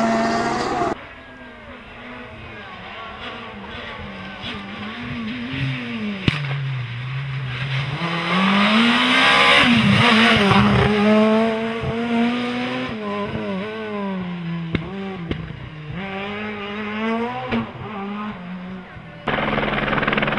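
A rally car engine roars and rises and falls in pitch through a bend.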